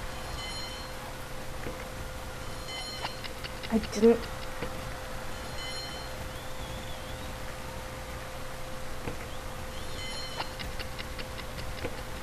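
A horse gallops with rhythmic hoofbeats.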